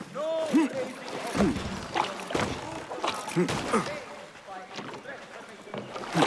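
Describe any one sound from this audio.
Water splashes as a person wades through a river.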